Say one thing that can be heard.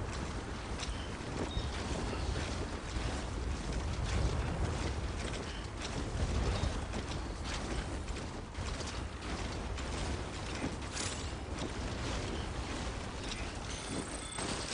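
Boots crunch and trudge through deep snow.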